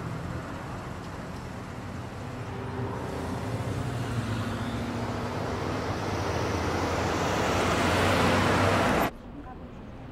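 A car engine hums as the car drives slowly closer and grows louder.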